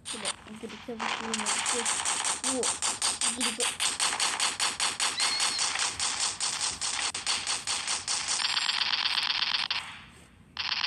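A game's automatic rifle fires in rapid bursts.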